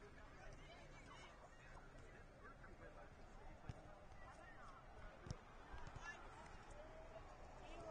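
Young men shout and call out across an open field in the distance.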